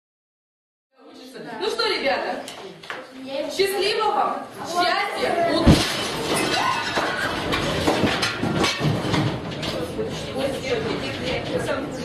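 A woman speaks up to a group, close by in a room.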